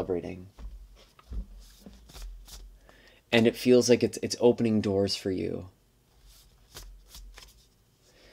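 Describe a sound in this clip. A cardboard box rustles and taps in a young man's hands.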